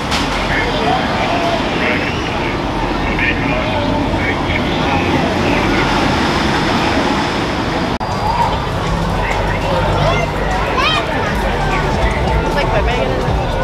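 Cars drive by on a street.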